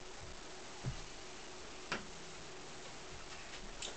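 An acoustic guitar knocks as a man picks it up.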